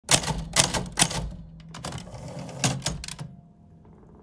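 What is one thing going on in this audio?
Typewriter keys strike sharply.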